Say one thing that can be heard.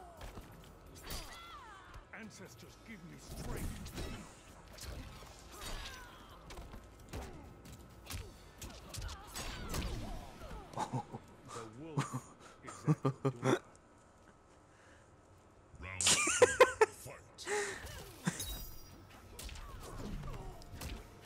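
Heavy blows thud and crack in a fight.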